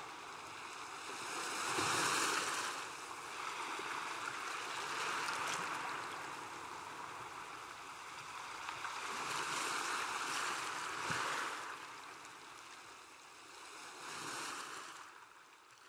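Waves wash onto a beach in the distance.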